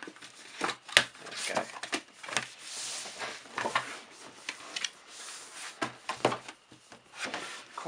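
A box flap is pulled open with a papery rustle.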